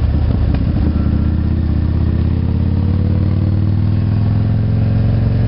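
A motorcycle engine hums steadily, rising slightly in pitch.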